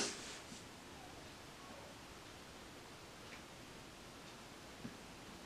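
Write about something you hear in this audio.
A paintbrush softly brushes across paper.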